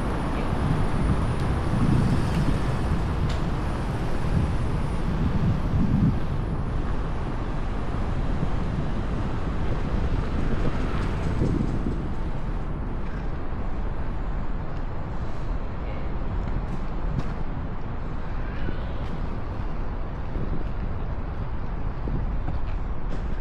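A small electric wheel hums as it rolls over pavement.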